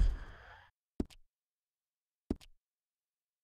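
Short game menu clicks sound.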